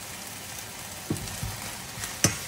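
Metal tongs clack against a frying pan.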